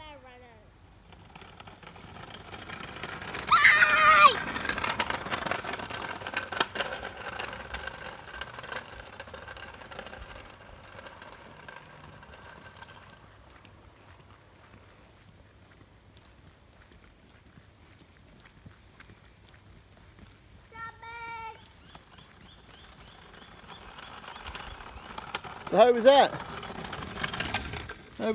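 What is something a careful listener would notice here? Small wheels of a hoverboard kart roll and whir on tarmac.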